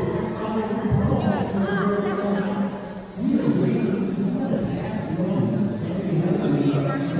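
Children chatter nearby in a large echoing hall.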